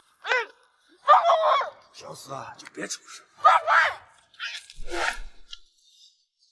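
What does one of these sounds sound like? A young man speaks threateningly up close.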